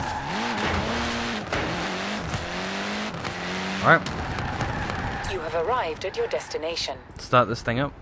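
A rally car engine roars and revs loudly as the car speeds along.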